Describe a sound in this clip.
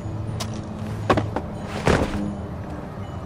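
Boots knock on the rungs of a wooden ladder.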